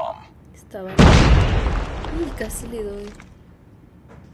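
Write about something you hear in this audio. A burst of gunfire blasts from a video game.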